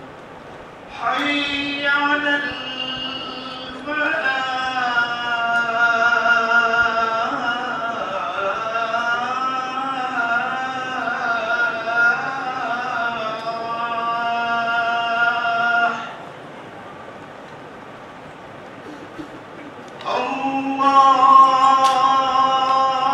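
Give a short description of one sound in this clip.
A man chants a long, melodic call through a microphone in an echoing hall, pausing between phrases.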